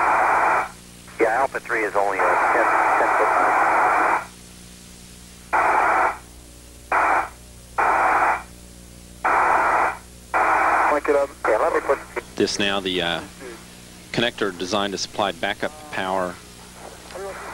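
A man speaks calmly over a crackly radio link.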